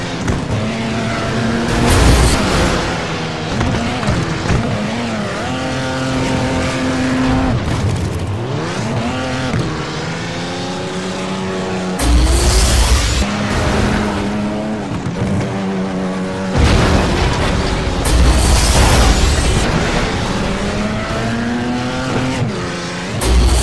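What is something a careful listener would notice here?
A car engine revs and roars loudly.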